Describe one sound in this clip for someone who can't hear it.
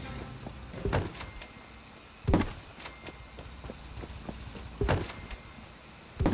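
Short electronic thuds and chimes sound from a game menu.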